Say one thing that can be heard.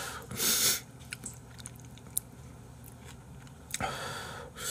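A man chews food with soft smacking sounds.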